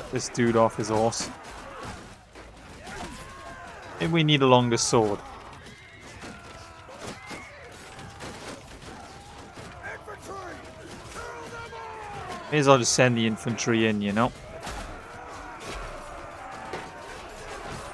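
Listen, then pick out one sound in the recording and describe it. Swords and shields clash in a noisy battle.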